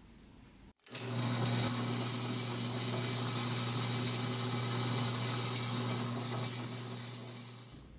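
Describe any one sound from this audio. Sandpaper rasps against a spinning metal part.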